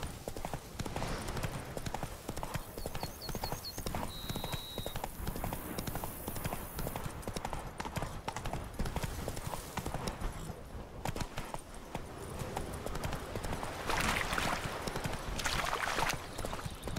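Horse hooves thud quickly on soft ground.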